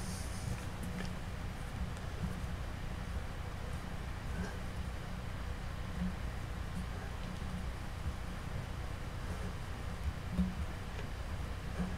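Small plastic parts click and tap softly as they are handled.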